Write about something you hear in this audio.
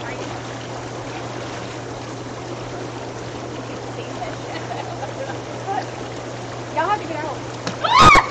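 Water bubbles and churns steadily in a hot tub.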